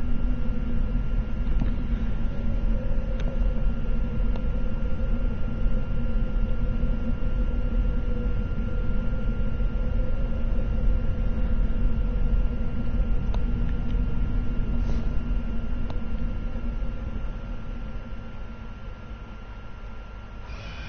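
A low wind rumbles steadily and fades away at the end.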